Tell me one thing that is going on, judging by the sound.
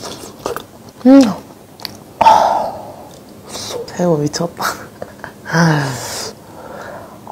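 A young woman hums with pleasure close to a microphone.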